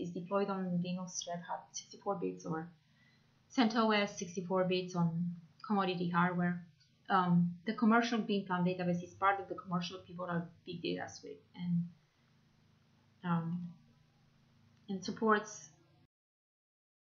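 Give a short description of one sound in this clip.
A young woman speaks calmly into a microphone.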